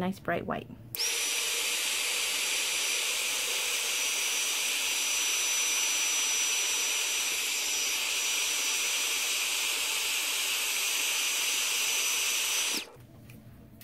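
A heat gun blows with a loud, steady rushing hiss and a high whine.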